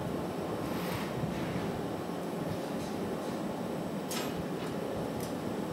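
A glass furnace roars steadily.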